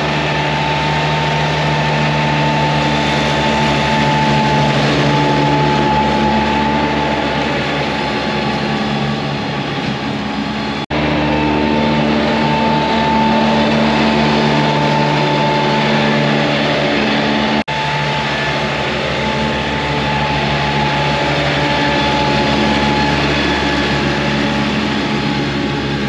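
Mower blades whir as they cut grass.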